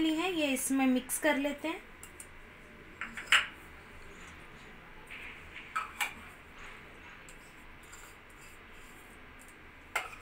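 Chopped vegetables are tipped from small ceramic bowls into a steel bowl.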